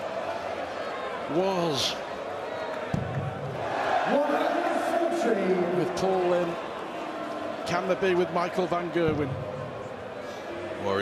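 A large crowd sings and cheers loudly in a big echoing hall.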